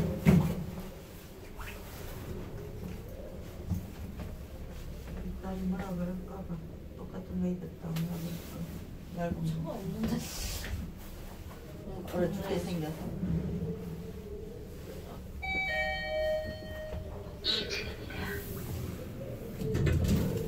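An elevator car hums as it moves.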